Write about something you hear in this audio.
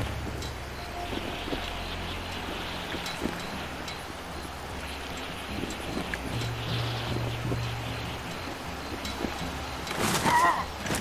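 A pulley whirs along a taut cable.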